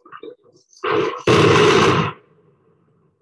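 Explosive charges boom as a tower block is demolished.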